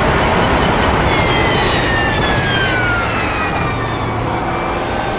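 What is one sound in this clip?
A racing car engine winds down sharply as the car brakes.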